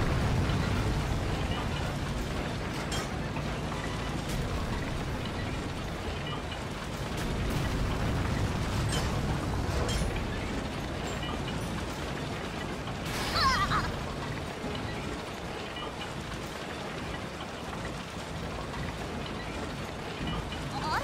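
Tank tracks clatter over paving stones.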